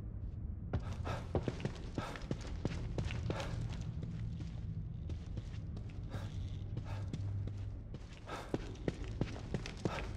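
Footsteps run quickly over a carpeted floor.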